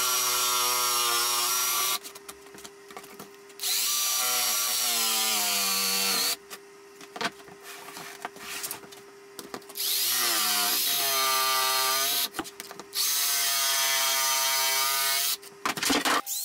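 A jigsaw buzzes loudly in bursts, cutting through a board.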